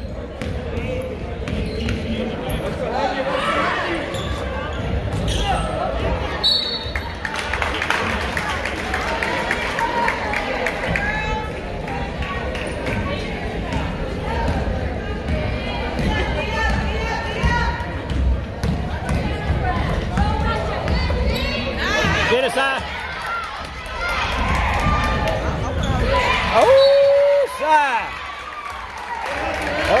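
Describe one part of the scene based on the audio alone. A crowd of spectators chatters and calls out in an echoing gym.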